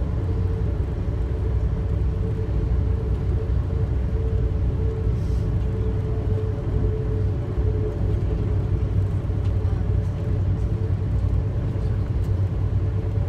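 A low steady hum drones inside the train carriage.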